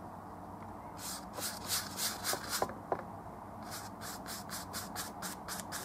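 A stiff paintbrush scrapes in quick, rhythmic strokes across a canvas.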